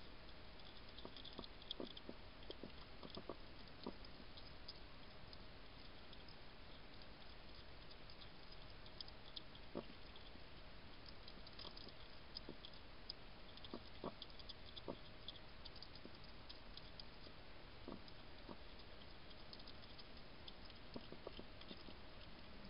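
A porcupine crunches food close by, with sharp, scattered clicks.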